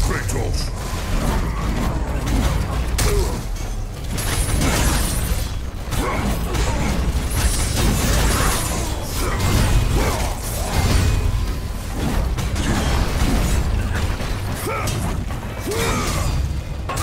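Blades slash and strike enemies in rapid, repeated hits.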